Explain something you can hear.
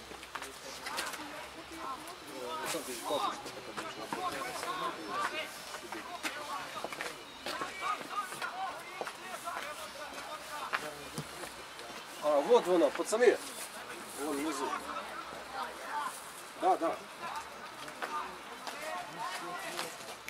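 Players call and shout to each other across an open field.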